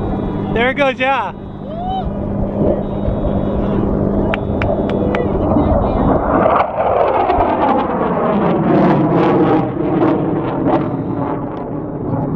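A jet engine roars loudly and sweeps past overhead.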